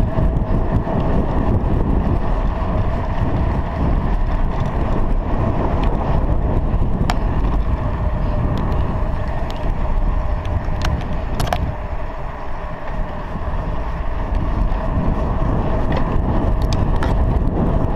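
Wind rushes loudly past a microphone while riding a bicycle outdoors.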